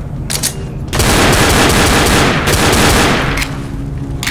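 Rapid gunshots fire in a burst.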